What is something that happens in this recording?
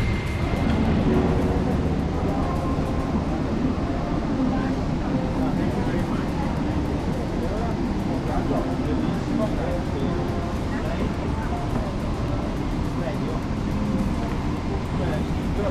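An aircraft cabin hums with a steady low engine roar.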